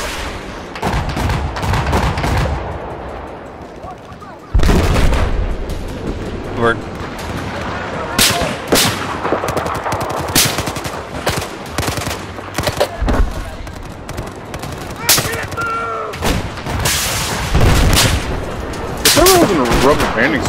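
Gunfire crackles in sharp bursts.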